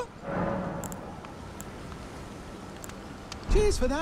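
A campfire crackles nearby.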